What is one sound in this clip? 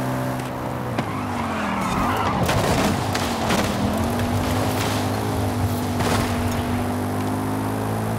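Tyres skid and scrape over gravel and grass.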